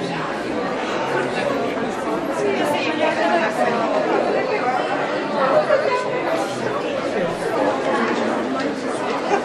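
A crowd of men and women chatter all around in an echoing room.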